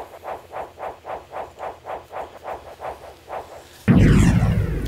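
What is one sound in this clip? A soft whooshing tone pulses in a quick, steady rhythm.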